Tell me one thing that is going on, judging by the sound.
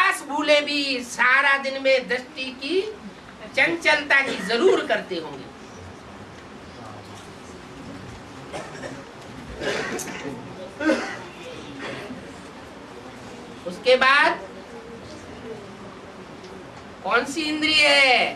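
An elderly man speaks calmly into a close microphone, pausing often.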